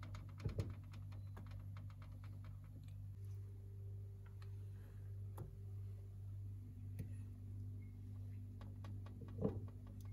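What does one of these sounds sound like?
Tomato slices are laid softly onto a metal baking tray with light taps.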